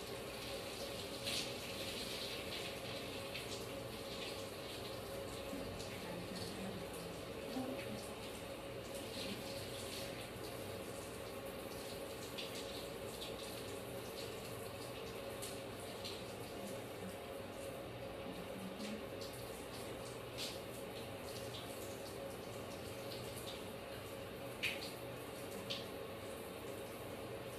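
Hands scrub lathered hair.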